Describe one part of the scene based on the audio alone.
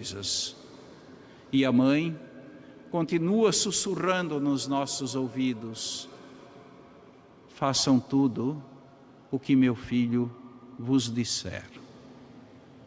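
An elderly man speaks slowly and solemnly through a microphone in a large echoing hall.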